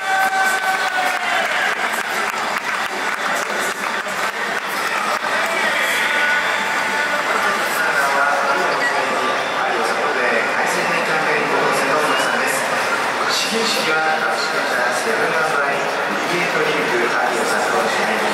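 A large crowd cheers and chants loudly outdoors.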